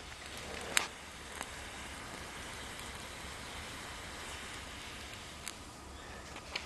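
A small flame burns with a soft hiss.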